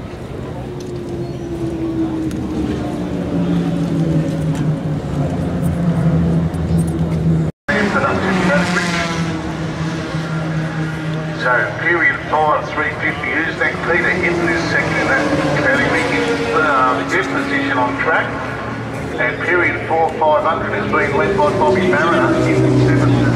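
A motorcycle engine idles nearby with a low, steady rumble.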